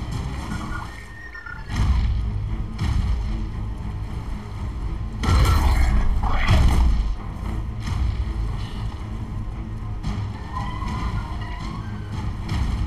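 Large wings flap with heavy, whooshing beats.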